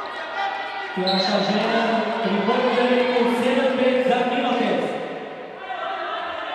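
A crowd chants loudly in a large echoing hall.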